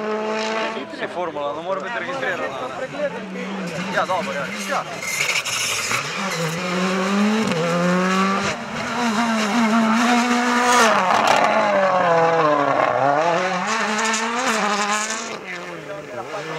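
Engines pop and crackle as the cars lift off.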